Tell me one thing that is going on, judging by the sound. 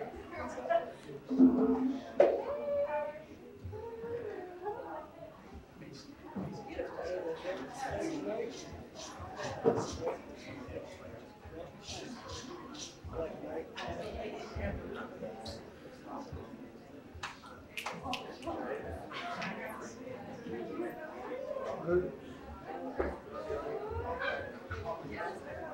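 A hand drum is tapped lightly.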